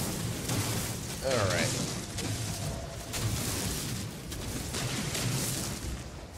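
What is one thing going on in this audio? Rock crumbles and rattles as it breaks apart.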